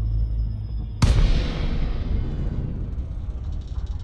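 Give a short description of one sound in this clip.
A spaceship drops out of high-speed flight with a sudden loud whoosh that slowly fades.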